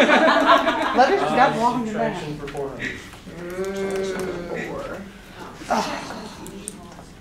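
Young women talk and exclaim with animation in a room with a slight echo.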